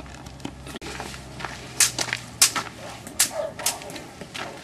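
Leafy branches rustle and brush close by.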